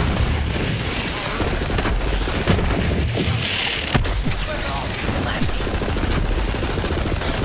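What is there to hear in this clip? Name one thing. Video game gunfire crackles as an energy weapon fires in bursts.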